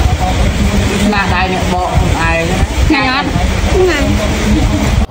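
A young girl speaks softly up close.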